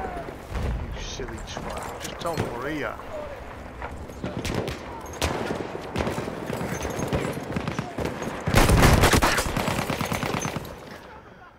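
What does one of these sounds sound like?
Pistol shots crack sharply.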